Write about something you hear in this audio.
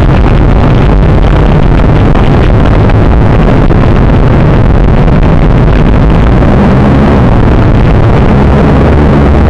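Strong wind blows and rumbles outdoors.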